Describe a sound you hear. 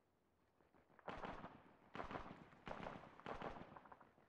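Rapid bursts of rifle fire crack out in quick succession.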